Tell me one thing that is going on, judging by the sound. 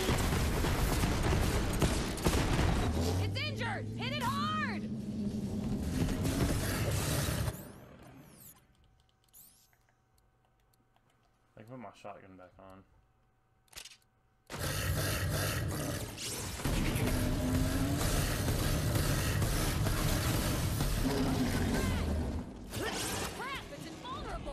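Gunfire and explosions ring out in a video game.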